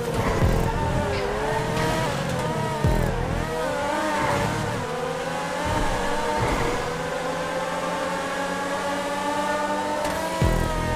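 A race car engine roars at high revs, its pitch rising and falling with gear changes.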